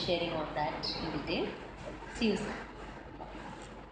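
A middle-aged woman speaks cheerfully close by.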